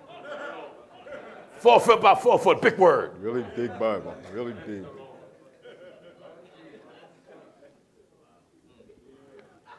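A middle-aged man preaches loudly into a microphone, shouting with passion in a large hall.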